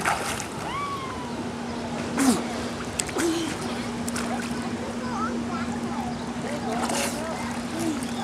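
Water splashes softly as a child swims.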